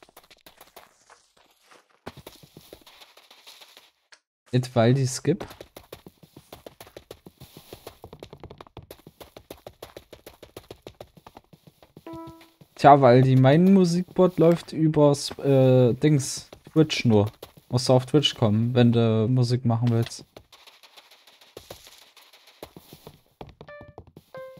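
Quick footsteps patter over grass and dirt in a game.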